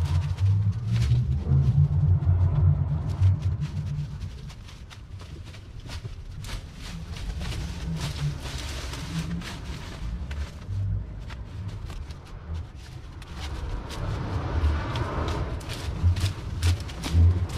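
Branches and vines rustle and crack as a man pulls them down.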